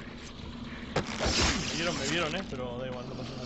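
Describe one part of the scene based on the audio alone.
A man groans and struggles.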